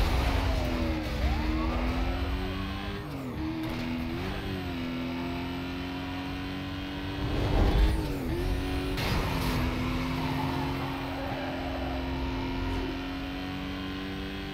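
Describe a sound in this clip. Tyres rumble on the road at speed.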